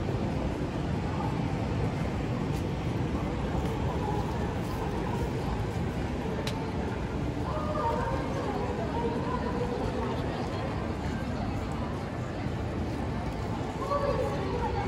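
Footsteps of passers-by tap on paving.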